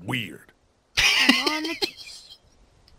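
A young boy answers in a soft voice.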